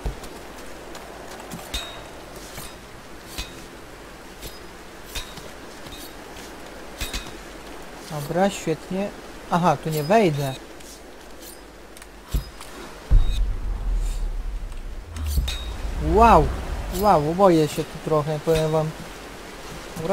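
Hands and feet tap and scrape on rock.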